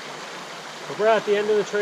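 A young man speaks close by.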